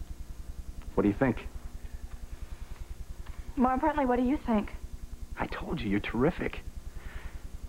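A man speaks softly and warmly, close by.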